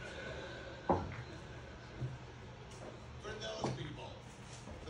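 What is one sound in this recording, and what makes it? Billiard balls knock together and roll across the table.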